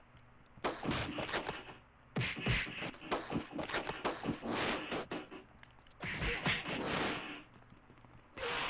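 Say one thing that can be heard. Punches and kicks land with thudding hits in a video game brawl.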